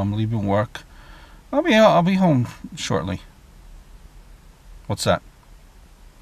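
A man speaks in short phrases close by, in a low, calm voice.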